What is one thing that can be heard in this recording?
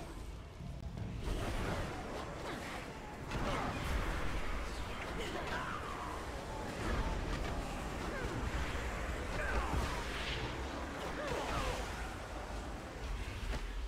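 Magic spells whoosh and crackle in bursts.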